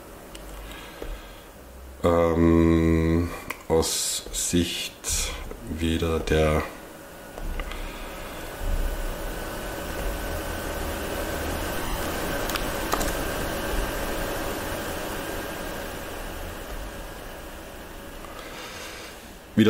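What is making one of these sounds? Keys click softly on a laptop keyboard.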